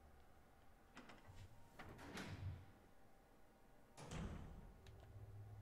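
A heavy metal door creaks open and slams shut.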